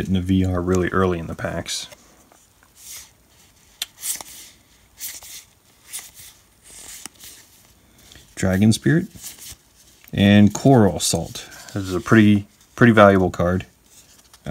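Trading cards shuffle and slide against each other.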